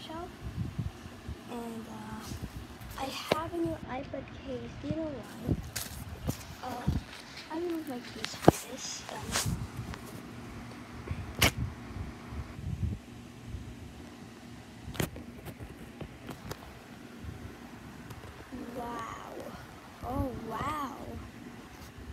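A young girl talks animatedly close by.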